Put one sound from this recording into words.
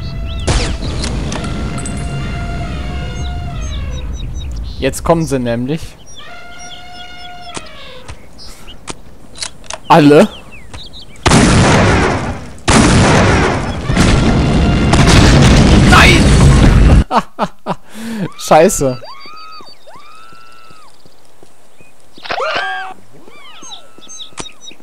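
A rifle fires a loud shot.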